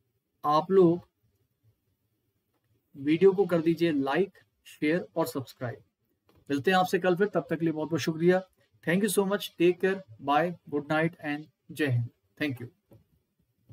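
A man speaks into a close microphone in a calm, explaining voice.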